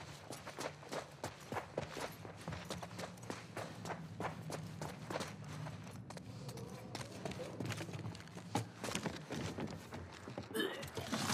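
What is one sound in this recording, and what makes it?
Footsteps hurry up wooden stairs and across a floor.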